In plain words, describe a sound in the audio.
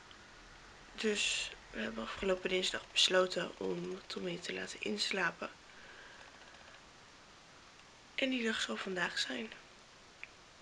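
A young woman talks casually, close by.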